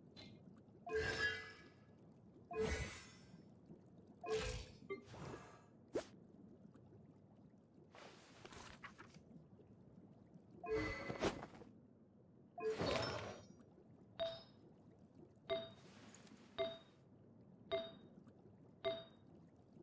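Short chiming interface sounds play at intervals.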